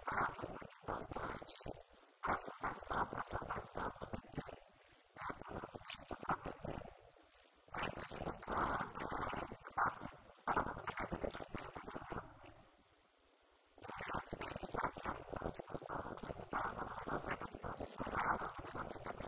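A woman speaks calmly into a microphone, heard through a loudspeaker.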